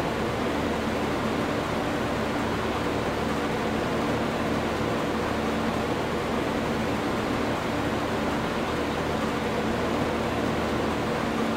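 A combine harvester engine drones steadily while harvesting.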